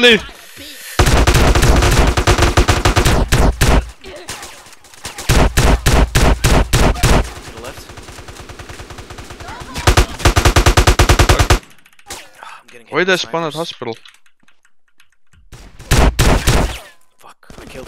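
Automatic gunfire rattles in rapid bursts close by.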